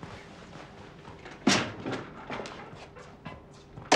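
A door handle clicks and a door opens.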